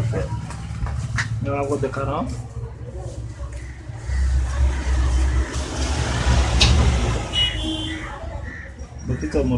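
Hands handle a phone, with light plastic clicks and taps.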